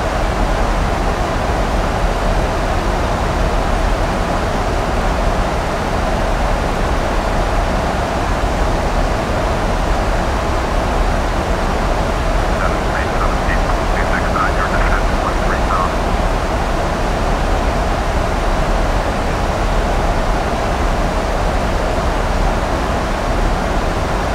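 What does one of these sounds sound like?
A jet airliner's engines roar steadily in flight.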